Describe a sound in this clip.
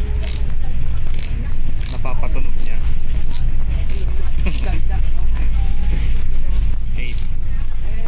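Paper banknotes rustle and flick as they are counted by hand.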